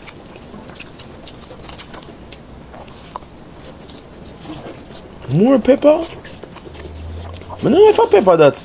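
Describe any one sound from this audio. A woman chews and crunches food close by.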